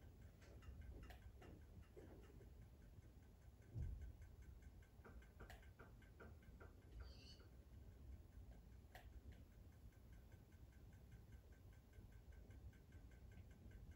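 Game pistons clack open and shut in a quick, steady rhythm.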